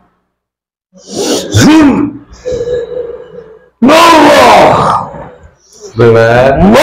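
A man shouts and cries out loudly close by.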